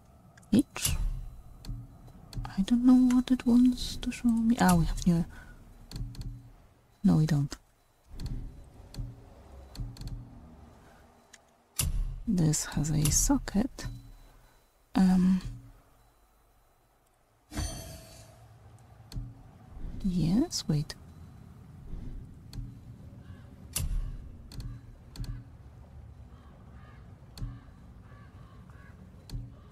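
Soft menu clicks tick now and then as selections change.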